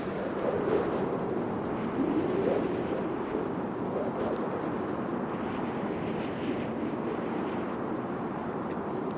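Wind rushes steadily past a gliding cape.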